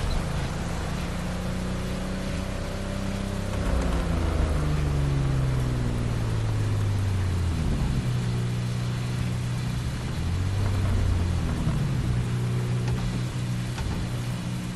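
A sports car engine idles and revs up and down with a deep rumble.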